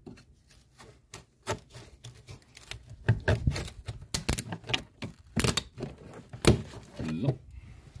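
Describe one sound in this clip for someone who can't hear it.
A metal tool scrapes and clicks against plastic.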